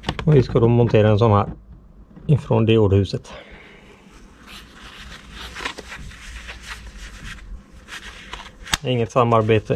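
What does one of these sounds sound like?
A plastic blister pack crinkles.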